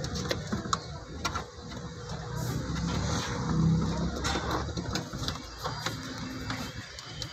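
A hand rustles and knocks among wires and parts.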